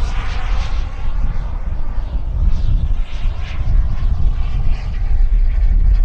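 A turbine-powered model jet roars as it flies overhead.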